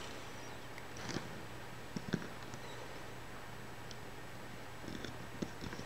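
Rubber bands tap and snap softly against plastic pegs.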